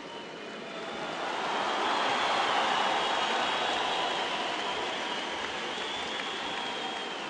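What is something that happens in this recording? A crowd cheers loudly and then slowly quiets.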